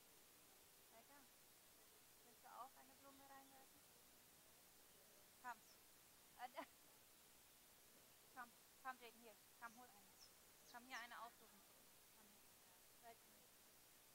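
Men and women sing softly outdoors in short phrases.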